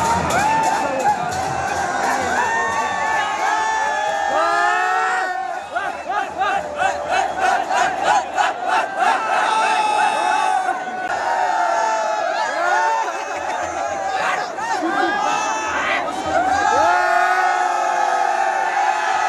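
A large crowd of young men cheers, shouts and whistles outdoors.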